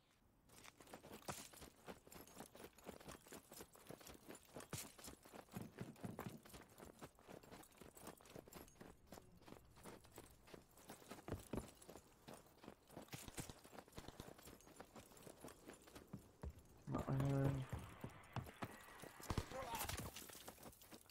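Footsteps crunch quickly over snow and gravel.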